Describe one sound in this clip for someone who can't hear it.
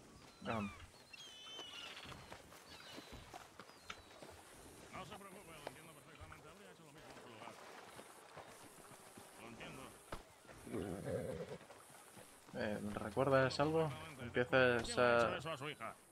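A horse's hooves clop slowly on dirt.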